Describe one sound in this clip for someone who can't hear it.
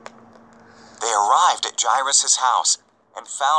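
A young girl reads aloud close to a microphone.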